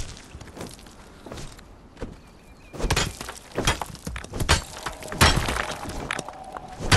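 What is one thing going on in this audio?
A pickaxe strikes rock with sharp, repeated cracks.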